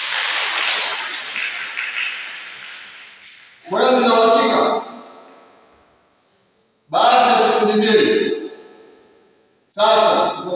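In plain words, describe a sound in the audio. A man speaks forcefully in short bursts through a microphone, echoing loudly around a large room.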